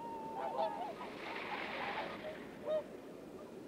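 Water splashes as a swan lands.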